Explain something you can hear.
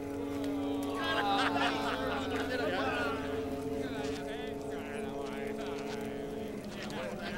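Several men's voices murmur and call out close by.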